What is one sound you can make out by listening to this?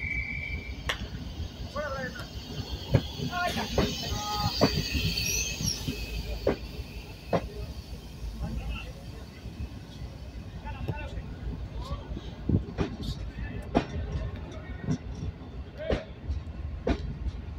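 Train wheels clack and knock over rail joints.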